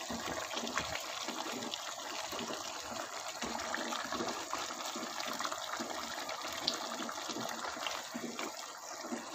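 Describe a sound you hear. A wooden spoon scrapes and knocks against a pot.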